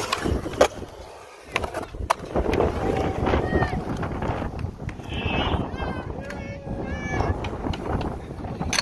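Skateboard wheels roll and rumble over rough concrete.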